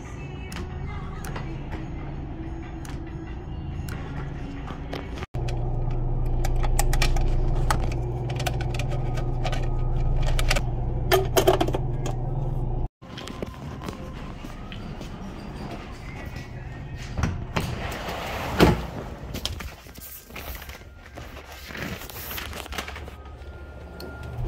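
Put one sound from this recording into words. A metal switch lever clicks.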